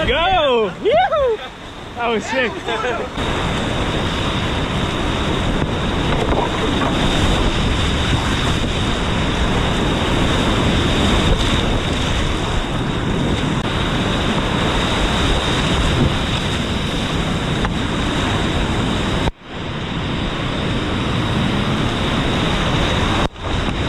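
A paddle splashes through the water.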